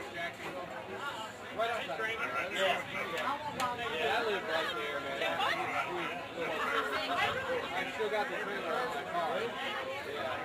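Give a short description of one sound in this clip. A crowd of adults chatters nearby outdoors.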